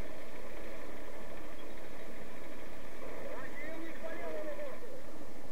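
A tank engine idles with a low steady rumble.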